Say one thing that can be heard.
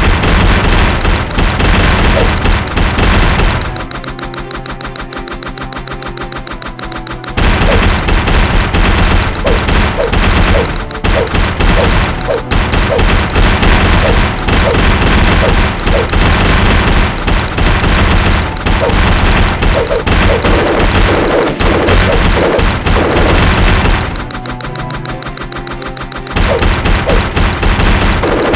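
Flaming arrows rain down and burst in rapid, crackling explosions.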